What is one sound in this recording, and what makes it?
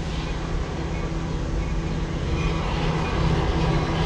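A train approaches from far off with a low rumble.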